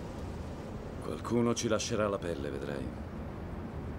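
A man speaks briefly in a low voice inside a car.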